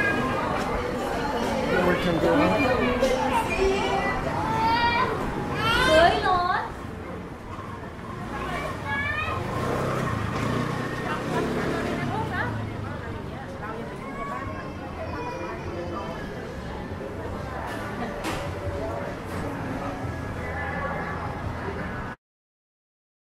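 Voices of passers-by murmur along a busy street.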